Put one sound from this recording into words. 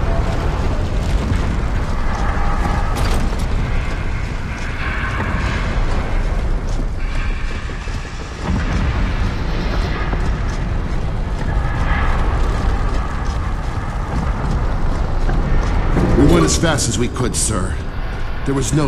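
Heavy boots thud on stone as a soldier runs.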